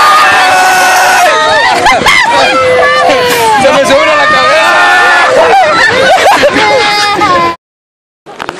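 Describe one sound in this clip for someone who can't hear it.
A young man laughs and shouts loudly up close.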